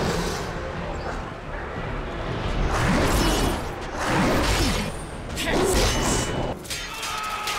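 Metal blades clash and strike.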